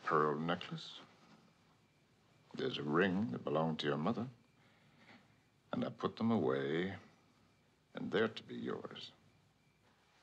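A man speaks quietly and gently, close by.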